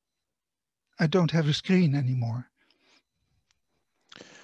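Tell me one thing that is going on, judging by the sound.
An elderly man speaks calmly through an online call microphone.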